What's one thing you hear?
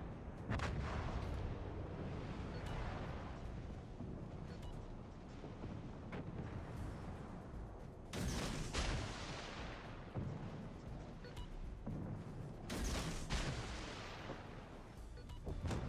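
Heavy naval guns fire with deep, loud booms that rumble away.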